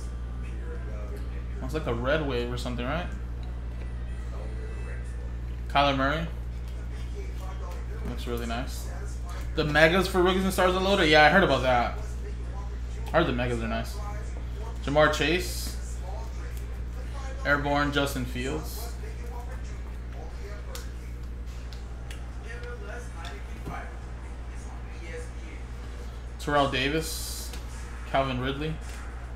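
Cards rustle and slide in hands.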